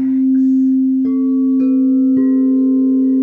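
A mallet taps crystal singing bowls a few times, each tap starting a new clear tone.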